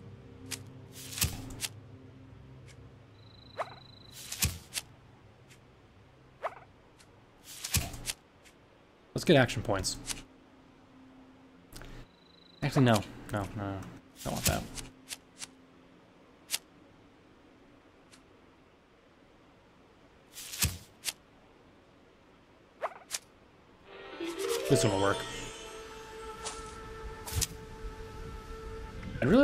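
Short clicks and whooshes sound as menu cards flip and slide.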